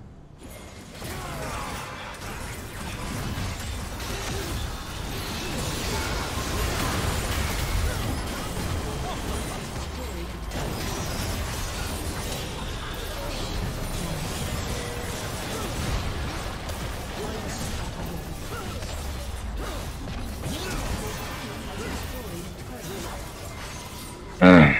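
Video game spells and attacks crackle and clash in a busy fight.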